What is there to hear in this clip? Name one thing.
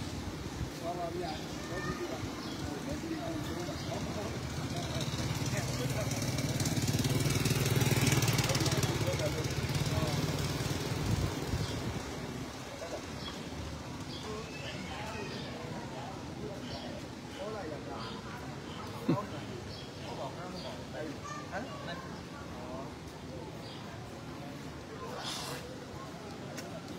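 An elderly man speaks calmly outdoors, some way off.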